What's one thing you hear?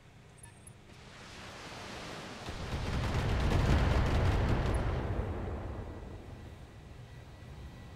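A heavy weapon fires with a long, rumbling roar that swells and fades.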